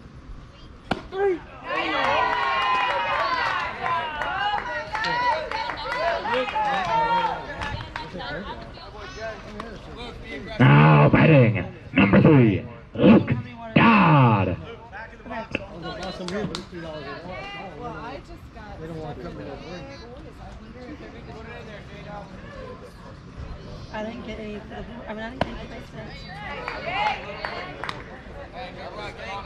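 Young players chatter and call out around a ballfield, outdoors.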